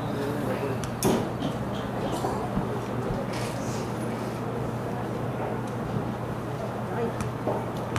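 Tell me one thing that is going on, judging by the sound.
A crowd of spectators murmurs and chatters outdoors at a distance.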